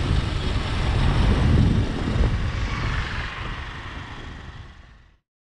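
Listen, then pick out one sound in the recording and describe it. Wind buffets and roars loudly, then fades away.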